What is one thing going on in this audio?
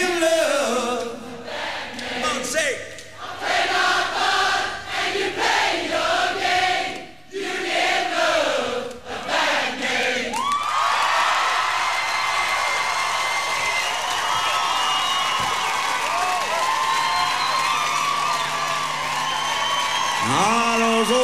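A large crowd cheers and claps in a big echoing hall.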